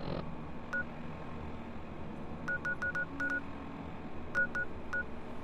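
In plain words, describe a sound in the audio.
Short electronic beeping clicks sound now and then, in quick bursts.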